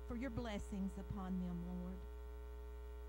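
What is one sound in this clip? A woman sings into a microphone over a loudspeaker, holding a long final note.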